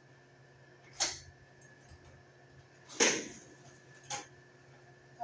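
Sharp knocks and clacks ring out.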